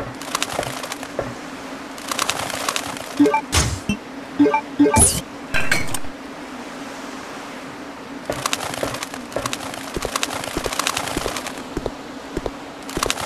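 Footsteps clatter on a metal floor.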